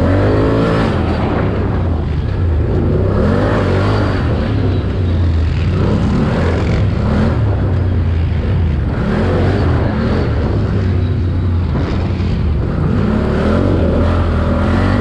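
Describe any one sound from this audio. A dirt bike engine roars and revs up and down close by.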